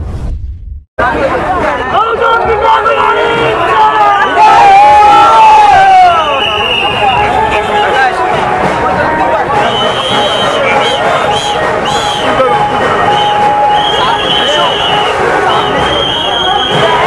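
A crowd of men chatter and shout loudly outdoors.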